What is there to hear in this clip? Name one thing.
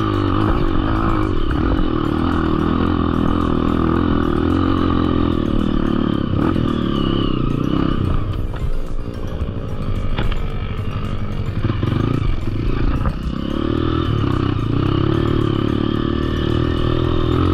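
A dirt bike engine revs loudly up close, easing off briefly before it picks up again.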